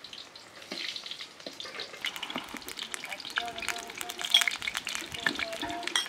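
A metal ladle clinks and scrapes against a metal pan.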